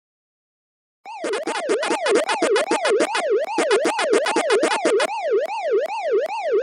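A video game's electronic chomping blips repeat rapidly.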